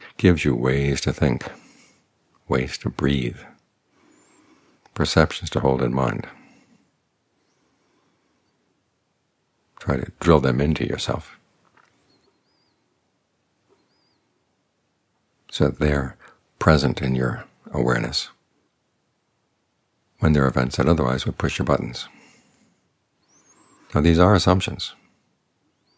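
An older man speaks calmly and slowly, close to a microphone, with long pauses.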